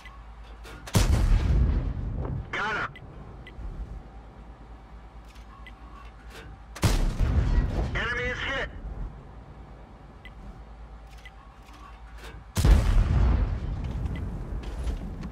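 A tank cannon fires with a loud, deep boom that rolls away.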